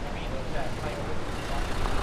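A young man talks calmly and close up.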